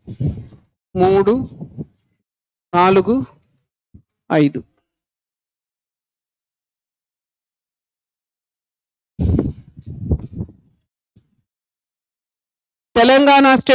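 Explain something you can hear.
A man speaks into a microphone in short, halting bursts, like a teacher explaining.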